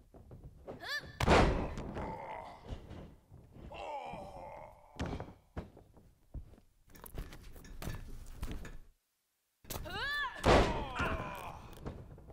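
A body slams onto a wrestling ring mat.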